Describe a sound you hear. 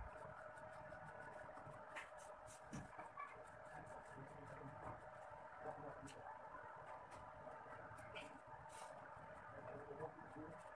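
A pencil scratches and rasps across paper.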